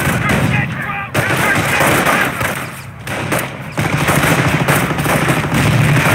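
Rifles and machine guns fire in rapid bursts.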